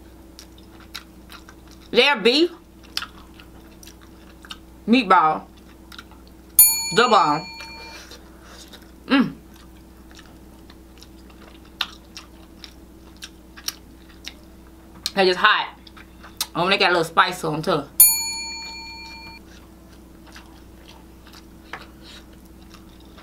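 A fork clicks against food in a tray.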